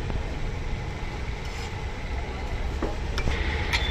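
A metal spatula scrapes and taps against a griddle.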